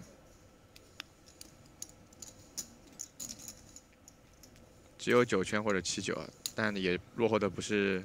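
Poker chips click softly in a hand.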